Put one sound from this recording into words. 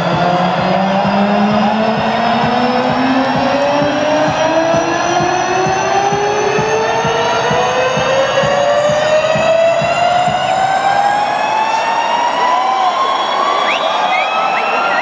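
Loud electronic music with a steadily rising tone and a thumping beat booms through loudspeakers in a large echoing arena.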